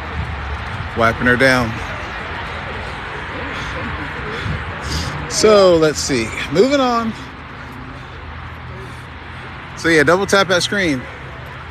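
Adults talk with animation close by outdoors.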